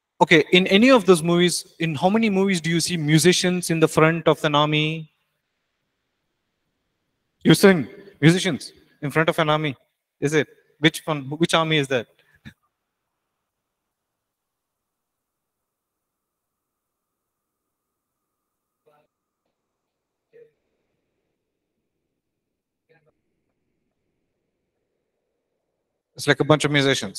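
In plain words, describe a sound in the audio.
A man speaks calmly into a nearby microphone, with pauses.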